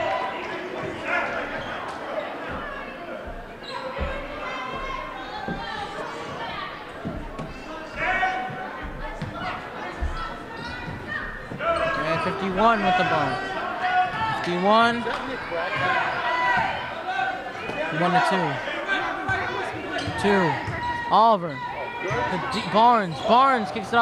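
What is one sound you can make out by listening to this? A crowd murmurs and chatters throughout a large echoing gym.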